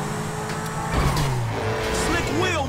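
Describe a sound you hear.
A car crashes into a truck with a loud metal bang.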